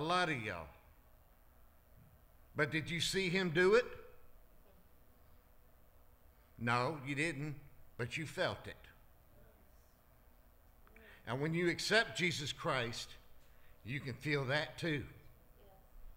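A middle-aged man speaks slowly and earnestly into a microphone, with pauses, in a reverberant hall.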